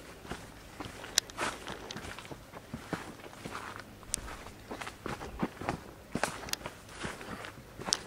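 Footsteps crunch and rustle through dry leaves and twigs.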